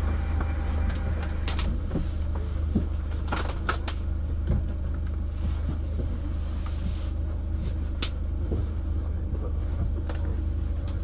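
A stationary tram hums low and steadily.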